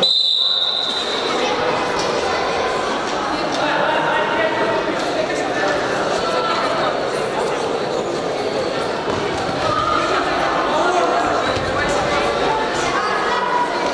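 A crowd of spectators chatters and murmurs in an echoing hall.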